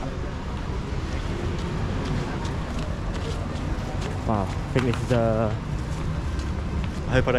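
Footsteps scuff along a paved walkway.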